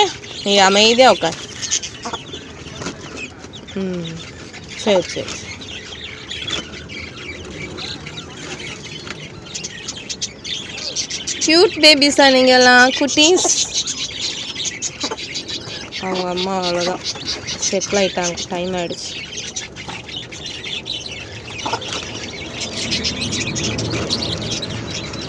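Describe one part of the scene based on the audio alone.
Chicks peep in high, rapid chirps.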